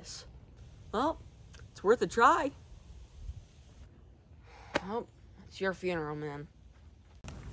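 A second teenage boy talks calmly, close to a microphone.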